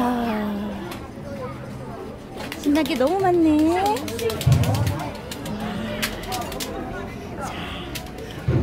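Men and women chatter in a busy outdoor crowd nearby.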